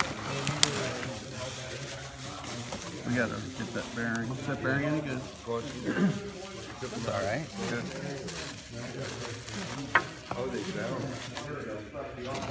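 Bubble wrap crinkles and rustles as it is unwrapped by hand.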